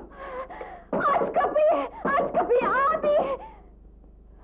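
A young woman cries out in distress, close by.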